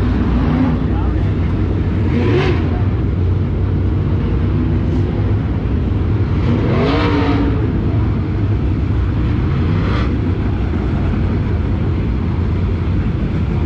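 Race car engines roar steadily around a dirt track outdoors.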